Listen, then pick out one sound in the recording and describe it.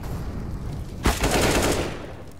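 An assault rifle fires a short burst.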